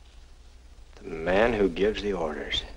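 A young man answers in a low, tense voice.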